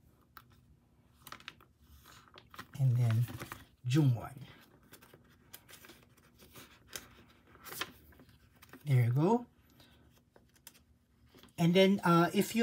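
Plastic binder sleeves rustle and crinkle as pages are turned.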